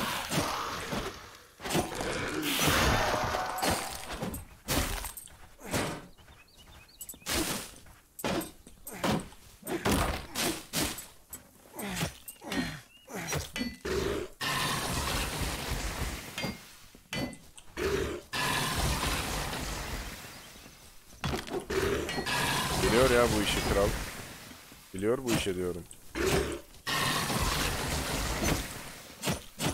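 Weapons strike enemies in quick, repeated hits.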